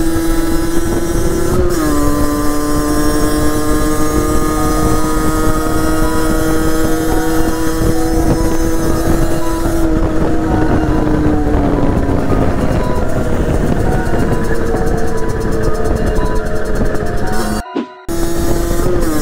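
A motorcycle engine hums loudly close by, shifting gears and changing pitch as it rides.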